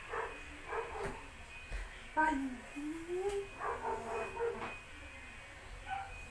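Feet shuffle and thump on a floor.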